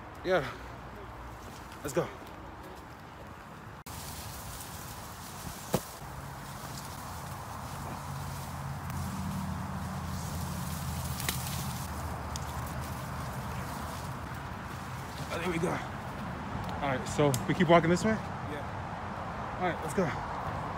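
Leaves and branches rustle as someone pushes through brush.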